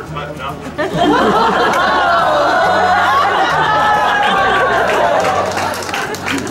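A crowd laughs and cheers loudly.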